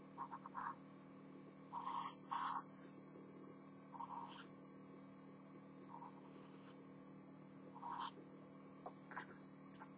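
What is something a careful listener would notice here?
A felt-tip pen squeaks and scratches across paper in short strokes.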